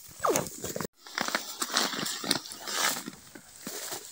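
Dry hay rustles and crackles as a man carries an armful of it.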